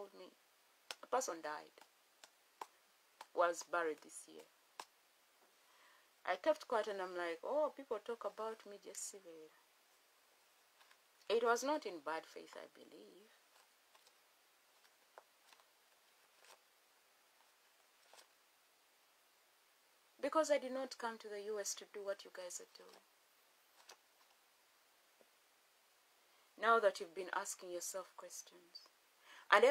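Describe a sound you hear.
A woman speaks calmly and close by, in short bursts with pauses.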